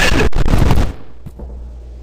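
A door swings open.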